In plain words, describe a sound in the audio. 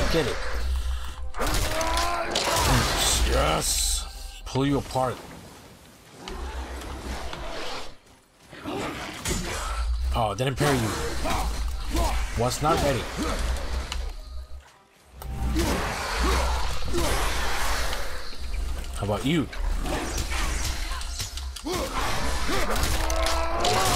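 An axe strikes and clangs in a fight.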